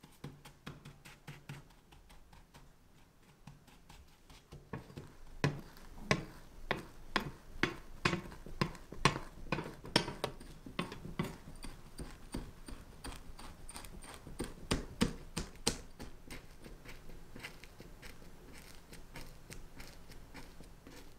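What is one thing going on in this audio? A spatula scrapes and presses dry crumbs into a metal tin.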